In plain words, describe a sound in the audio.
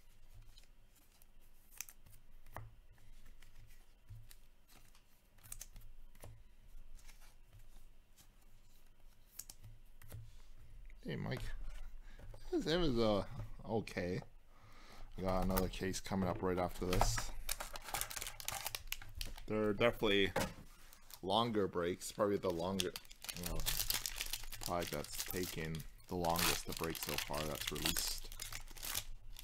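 Hands handle trading cards and rustle a foil pack open.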